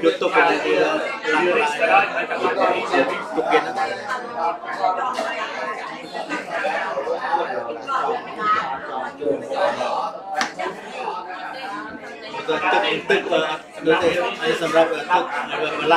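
Several adult men and women chat and murmur nearby.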